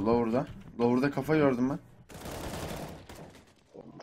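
A rifle fires a quick burst of shots.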